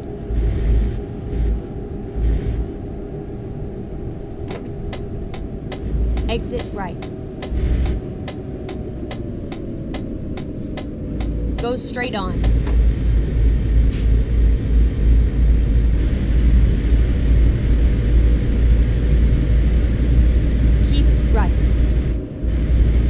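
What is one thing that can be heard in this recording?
A truck engine drones steadily, growing louder partway through.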